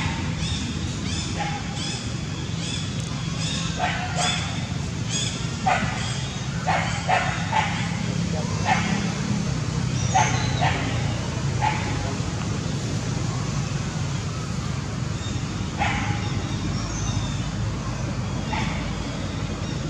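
A baby monkey squeaks and whimpers close by.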